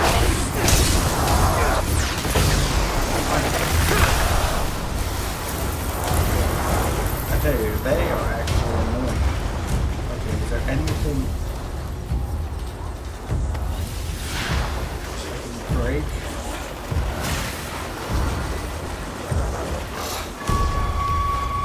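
Magic blasts burst and crackle loudly.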